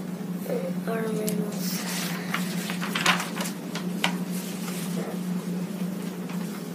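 Paper pages rustle and crinkle.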